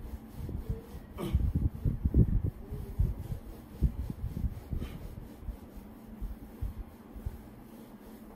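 A felt eraser rubs against a whiteboard.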